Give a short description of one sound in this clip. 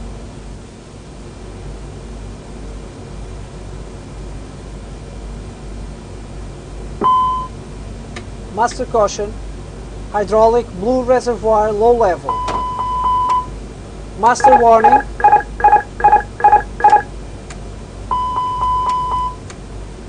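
A steady low hum of an aircraft fills the cockpit.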